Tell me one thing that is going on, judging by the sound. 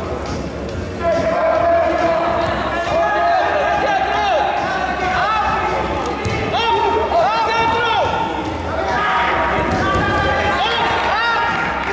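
Spectators whistle with rising and falling tones.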